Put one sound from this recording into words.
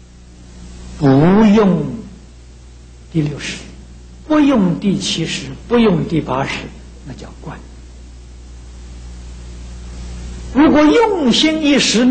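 An elderly man speaks slowly and calmly through a microphone, with pauses between phrases.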